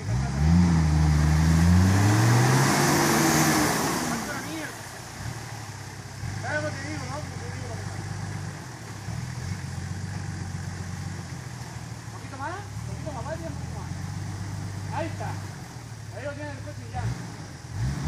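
An off-road vehicle's engine revs hard and then idles with a low rumble.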